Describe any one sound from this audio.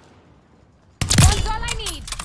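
A rifle fires a single loud shot that rings out.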